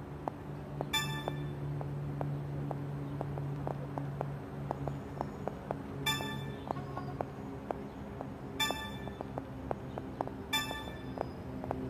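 A bright chime rings as an item is picked up.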